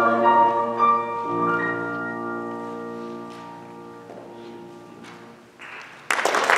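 A choir sings a held chord in an echoing hall.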